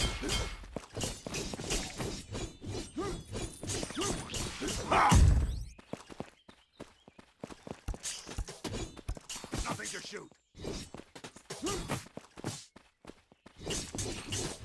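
A blade swings and slashes.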